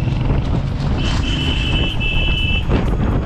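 A truck's horn honks nearby.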